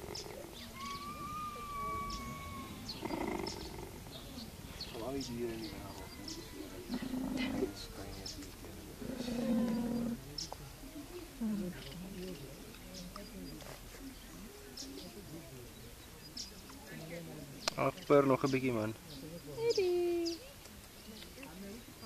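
A cheetah purrs close by.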